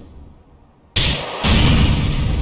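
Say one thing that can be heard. A rocket launches with a loud whoosh and a booming blast.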